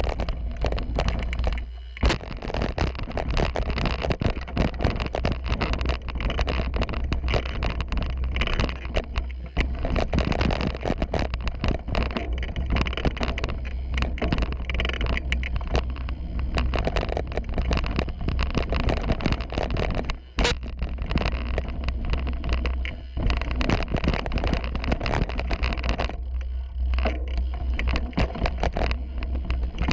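Bicycle tyres rattle and crunch over a rough dirt trail at speed.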